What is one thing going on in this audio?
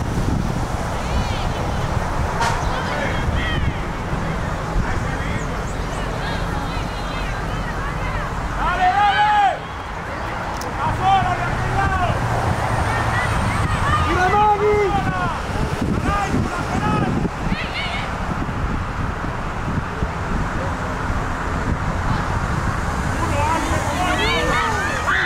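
Young girls shout and call out to each other outdoors.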